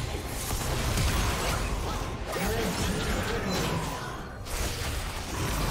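Spell effects burst and crackle in a fast battle.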